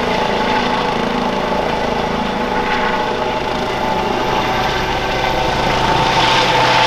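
A helicopter hovers overhead, its rotor chopping loudly and its engine whining steadily.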